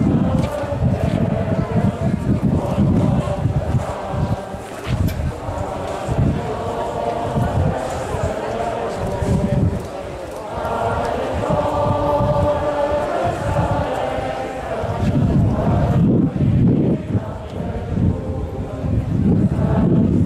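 A large crowd of men and women sings together outdoors.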